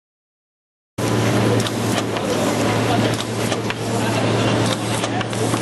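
Metal parts on a machine clack rhythmically.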